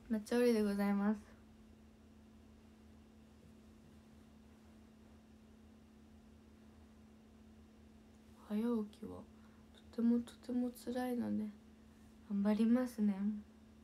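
A young woman talks brightly and close to a microphone, in short bursts with pauses.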